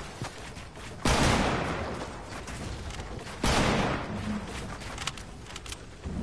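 Wooden walls snap into place with sharp knocks.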